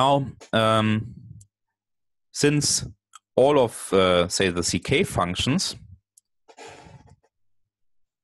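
A man explains calmly over an online call.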